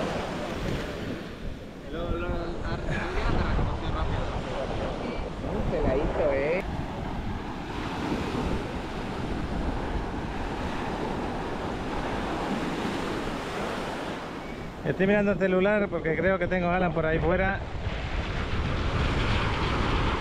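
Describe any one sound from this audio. Small waves wash up onto the sand.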